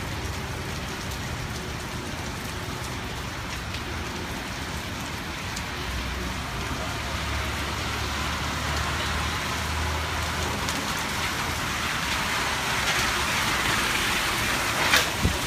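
Steady rain falls and patters outdoors.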